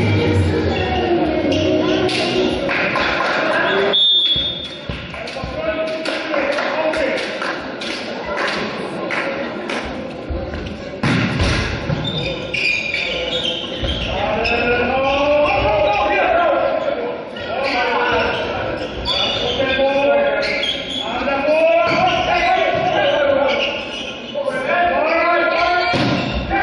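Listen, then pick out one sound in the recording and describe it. Young men shout and call out to each other in an echoing hall.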